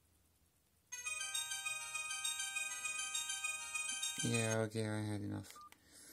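A mobile phone plays a ringtone melody.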